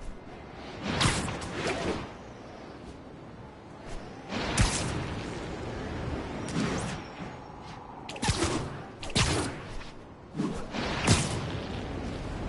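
Web lines thwip and snap in repeated bursts.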